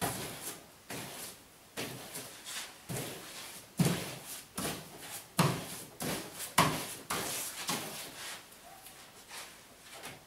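A pasting brush swishes across wallpaper.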